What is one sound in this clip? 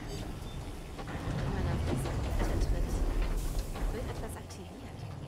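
A machine hums with a deep, loud rumble.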